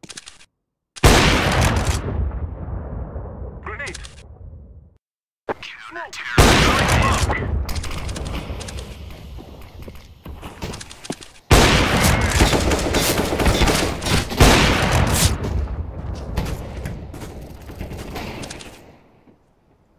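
A sniper rifle fires a booming crack that echoes away.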